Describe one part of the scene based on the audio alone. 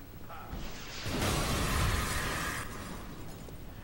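A rocket fires and explodes with a long, rumbling roar.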